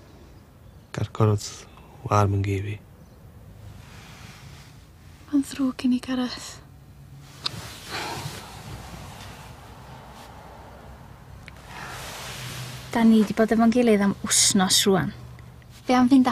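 A man speaks quietly and sadly, close by.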